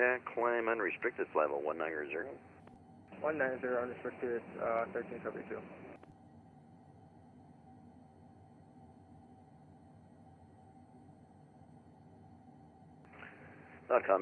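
A jet engine drones steadily in flight.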